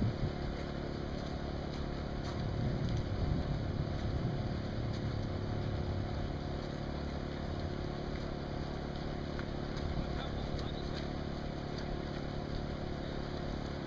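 Runners' footsteps patter on wet pavement in the distance.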